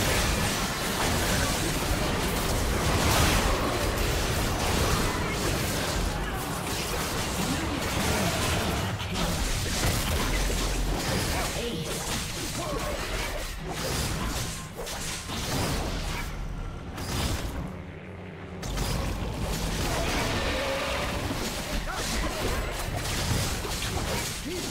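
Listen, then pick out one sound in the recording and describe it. Game spell effects and battle sounds clash and burst.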